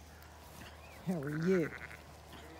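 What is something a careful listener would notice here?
A sheep bleats close by.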